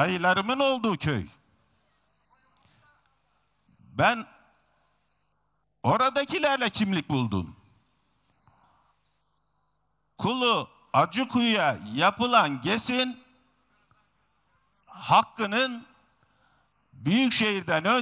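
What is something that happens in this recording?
A middle-aged man speaks with animation through a microphone and loudspeakers, outdoors, in short bursts with pauses.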